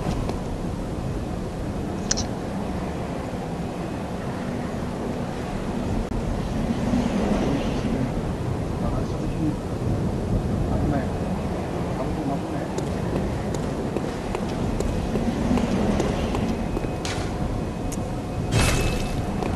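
Footsteps crunch on cobblestones.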